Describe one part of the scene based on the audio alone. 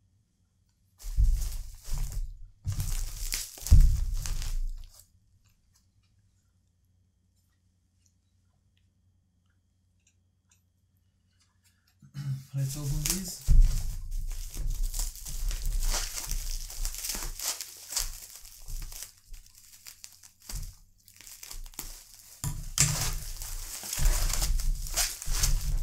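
Bubble wrap crinkles and rustles as packages are handled.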